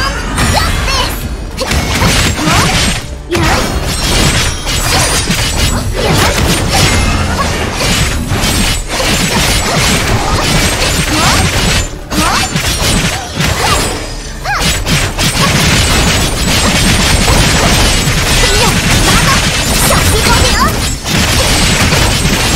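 Bright energy effects whoosh and shimmer in a video game battle.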